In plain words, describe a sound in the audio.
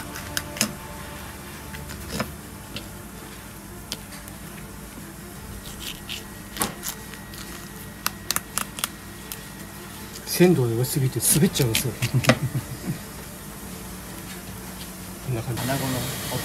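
A knife scrapes and taps against a cutting board.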